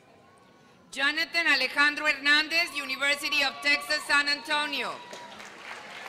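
A woman reads out through a loudspeaker.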